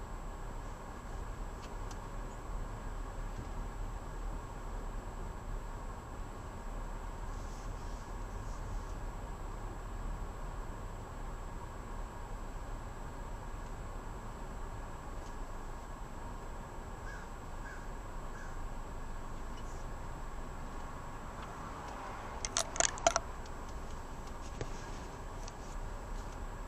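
A car engine and road noise rumble low from inside the cabin as the car creeps along in slow traffic.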